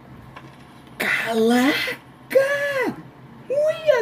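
A boy screams in fright close to a microphone.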